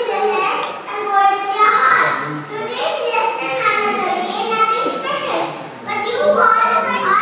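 A young girl speaks into a microphone, reciting in a clear, sing-song voice through a loudspeaker.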